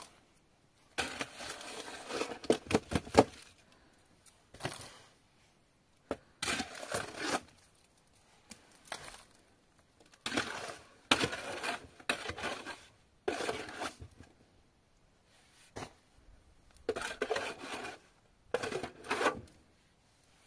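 A shovel scrapes and digs into dry, stony soil in bursts.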